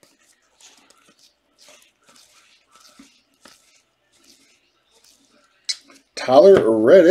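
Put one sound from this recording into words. Trading cards slide against each other as they are flipped through.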